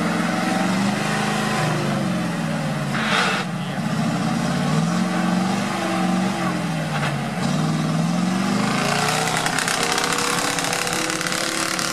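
A truck engine revs hard, rising and falling in pitch.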